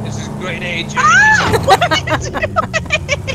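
A woman laughs loudly.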